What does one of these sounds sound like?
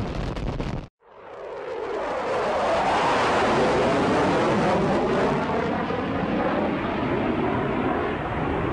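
Jet engines roar steadily as planes fly together.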